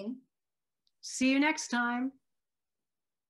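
A second woman answers warmly over an online call.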